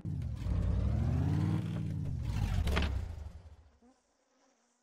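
A car engine rumbles and revs, then falls silent.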